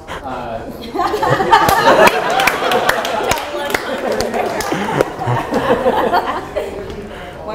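A group of men and women talk and laugh together.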